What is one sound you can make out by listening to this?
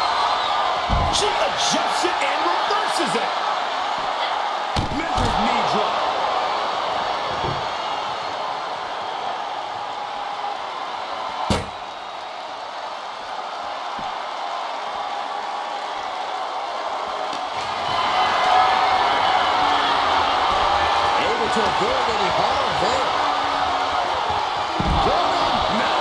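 Heavy thuds of bodies slamming down ring out now and then.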